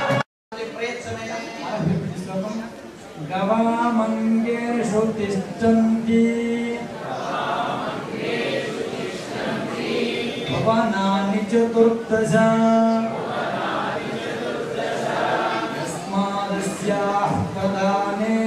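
Men chant together in a steady, droning rhythm, in a large echoing hall.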